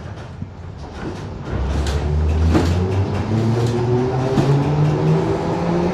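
A subway train rumbles and rattles along the track.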